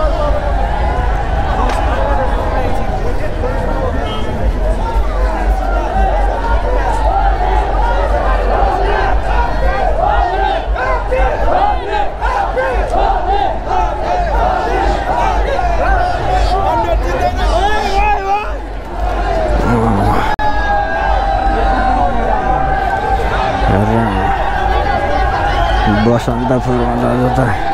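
A large crowd chatters and shouts outdoors all around.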